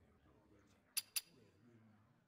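Two short clicks sound in quick succession.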